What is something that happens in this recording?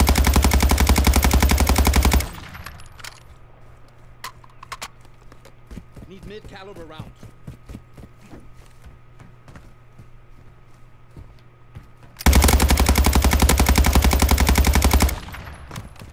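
A gun fires in rapid automatic bursts.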